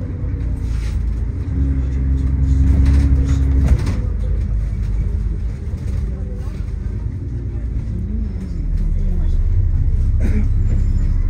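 A bus engine rumbles steadily, heard from inside the bus.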